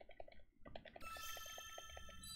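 Soft electronic game music begins to play.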